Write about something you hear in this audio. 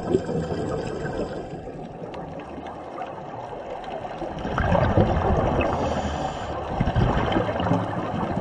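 Scuba regulators bubble and rumble underwater in bursts.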